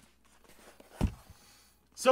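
A cardboard sheet thumps down onto a surface.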